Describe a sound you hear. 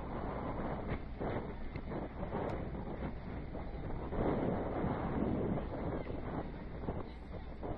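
Young women call out to each other across an open field in the distance.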